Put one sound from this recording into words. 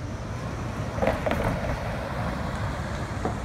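A pickup truck drives past.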